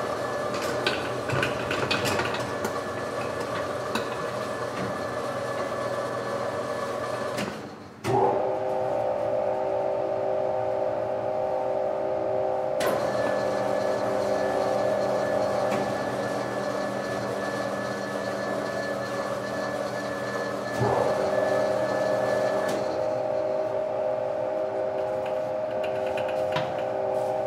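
Industrial washing machines hum and drone steadily.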